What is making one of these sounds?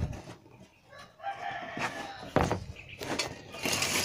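A rubber sheet rustles and scrapes across the ground.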